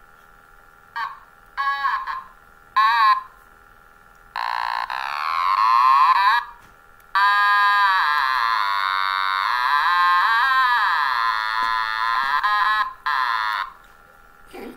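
A small electronic toy instrument squeals and warbles in sliding, wailing notes.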